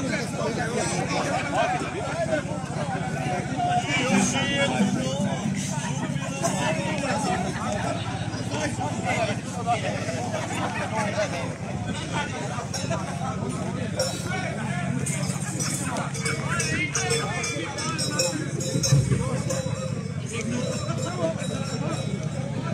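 Men sing along loudly with the band.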